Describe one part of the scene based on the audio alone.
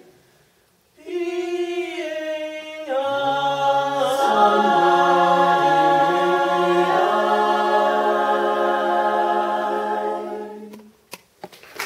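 A group of young women sings together in harmony.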